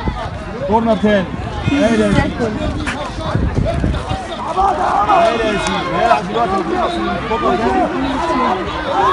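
Spectators cheer and call out nearby.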